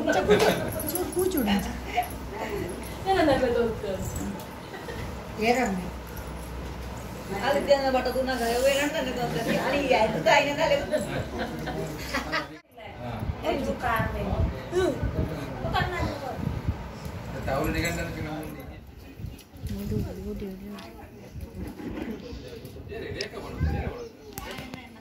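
A toddler babbles.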